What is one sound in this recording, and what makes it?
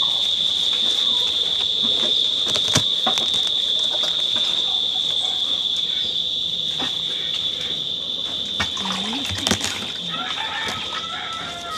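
A knife chops vegetables on a wooden board.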